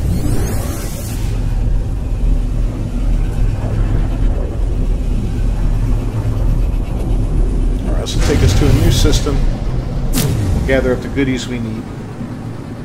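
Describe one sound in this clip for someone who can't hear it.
A spaceship's engine roars with a deep, steady rumble while rushing through space.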